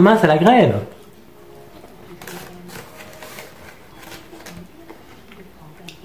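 A man chews food.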